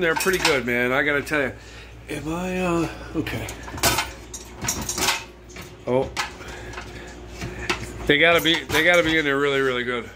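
A metal dish rack rattles as it slides in and out.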